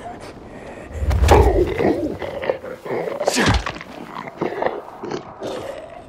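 A creature snarls and growls up close.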